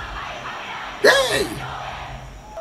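A crowd screams and cheers.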